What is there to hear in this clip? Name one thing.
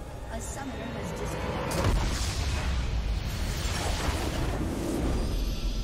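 Game sound effects of a fight burst and clash loudly.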